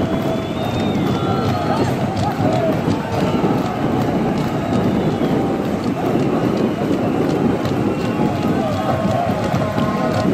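A large crowd cheers and chatters steadily in a stadium.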